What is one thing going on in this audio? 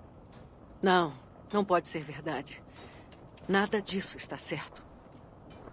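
A young woman speaks tensely and with emotion, close by.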